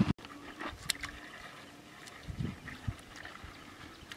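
Bare feet splash through shallow water.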